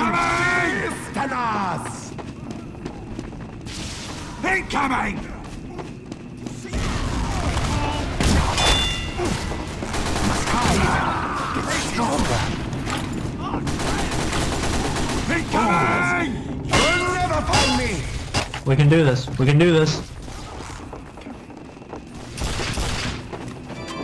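Gunfire and explosions crack and boom throughout.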